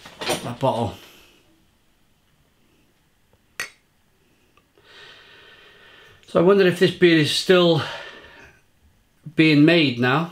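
A man speaks close by, calmly.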